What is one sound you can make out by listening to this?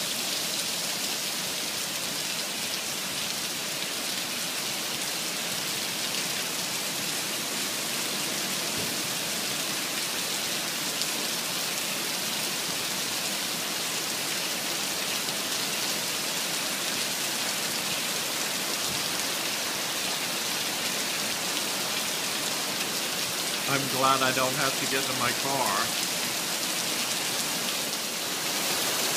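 Heavy rain pours down steadily outdoors, splashing on wet pavement.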